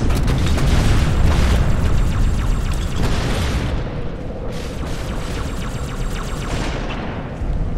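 Grenades explode with loud booms.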